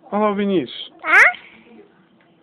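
A small child squeals with a high voice close by.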